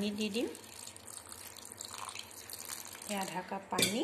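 Water pours into a metal bowl.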